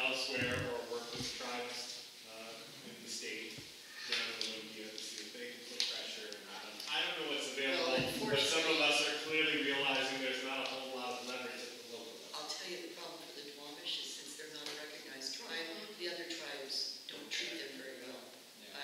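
An elderly woman speaks calmly, close by.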